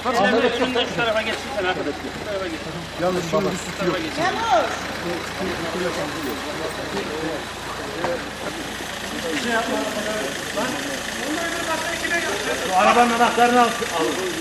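Several men talk and shout over each other outdoors.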